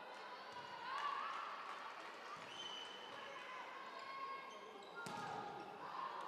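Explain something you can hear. A volleyball is struck with a hard slap.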